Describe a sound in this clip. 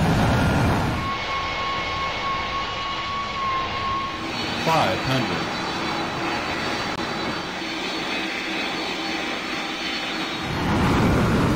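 A jet airliner's engines roar steadily.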